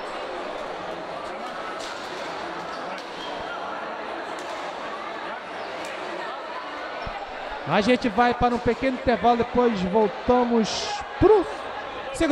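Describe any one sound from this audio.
A crowd murmurs and chatters in a large echoing indoor arena.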